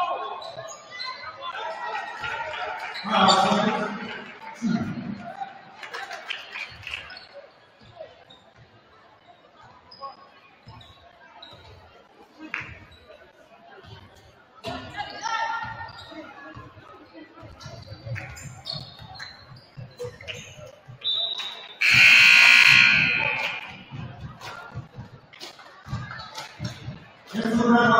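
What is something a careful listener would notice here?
A crowd of spectators cheers in a large echoing gym.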